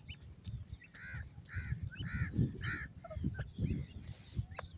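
Small birds chirp softly.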